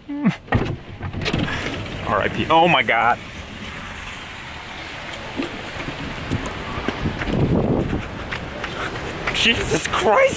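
A young man talks with strained emotion close by.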